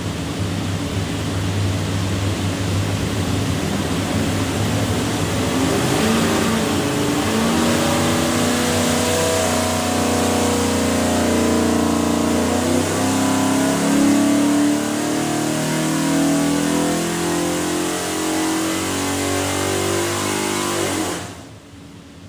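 A large engine roars loudly and steadily, then cuts off.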